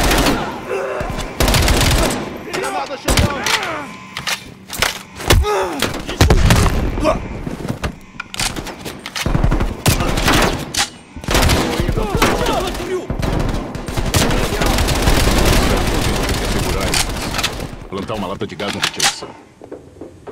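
Guns fire in loud, sharp bursts.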